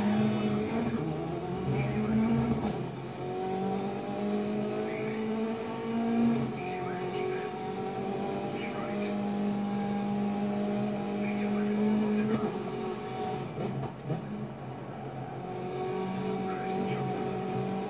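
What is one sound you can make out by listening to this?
Tyres skid and crunch on gravel through speakers.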